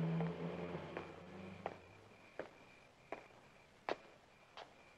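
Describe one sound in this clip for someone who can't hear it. Slow footsteps scuff on a hard path.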